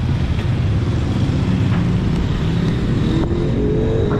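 Traffic rumbles steadily along a nearby street.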